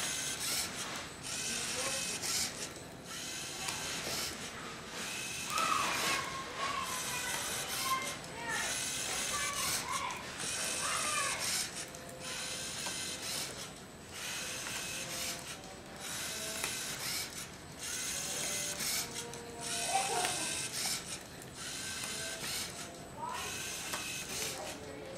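A small robot's motors whir in bursts as it turns.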